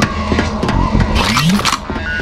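A weapon clicks and whirs as it is switched.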